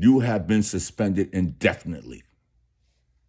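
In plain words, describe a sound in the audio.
A middle-aged man speaks with animation, close to a phone microphone.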